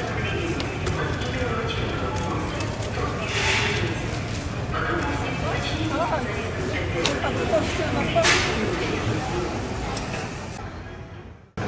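A crowd of adult shoppers murmurs and chatters in a large, busy indoor hall.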